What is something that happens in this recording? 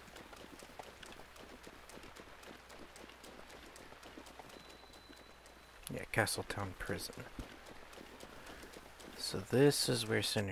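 Footsteps run quickly over wet grass.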